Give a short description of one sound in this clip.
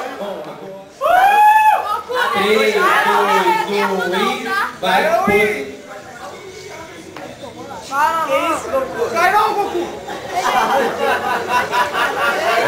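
A young woman speaks animatedly into a microphone, heard over loudspeakers.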